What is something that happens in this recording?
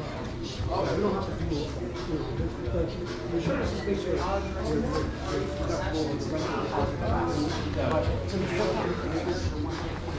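Men talk calmly at a counter a short way off.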